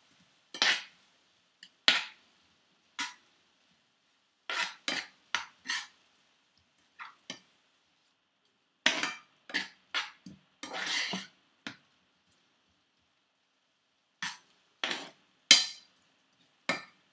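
A spatula scrapes and clatters against a pan in quick bursts.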